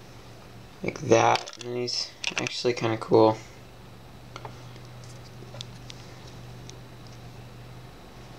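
Small plastic toy pieces click softly as a hand handles them.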